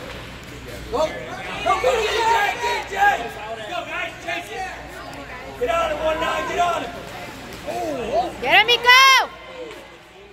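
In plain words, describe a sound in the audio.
Spectators cheer and shout loudly in an echoing rink.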